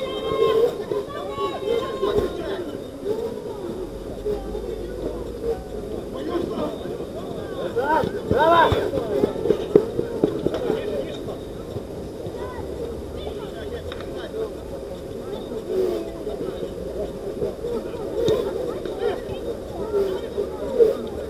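Men shout and call out to each other across an outdoor pitch.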